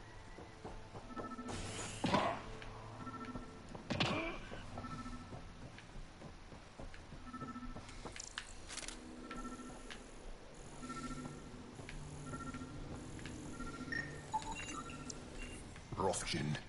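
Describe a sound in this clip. An electronic scanner beeps in a steady, repeating pulse.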